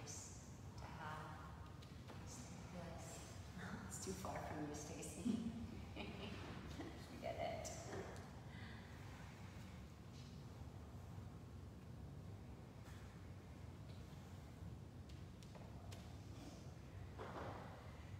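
A woman speaks calmly and softly nearby, with pauses.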